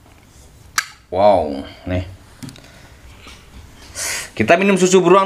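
A can ring-pull clicks open with a hiss.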